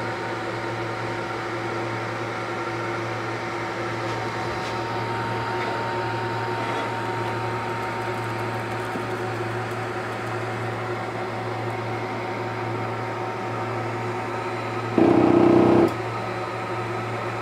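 A machine's fans hum steadily.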